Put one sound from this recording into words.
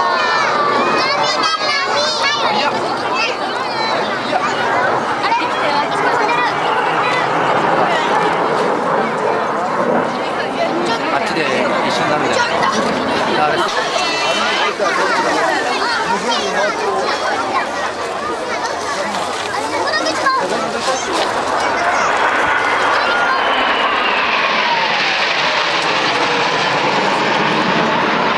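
A crowd of people chatters close by outdoors.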